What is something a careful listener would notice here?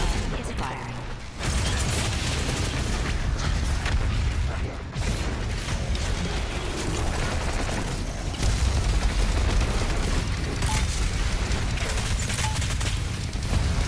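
Heavy gunfire blasts rapidly.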